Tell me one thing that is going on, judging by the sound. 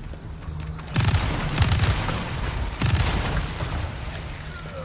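A gunshot booms loudly and echoes.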